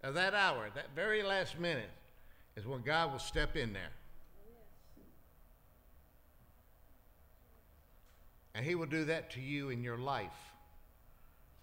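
A middle-aged man speaks with feeling into a microphone, in short bursts with pauses.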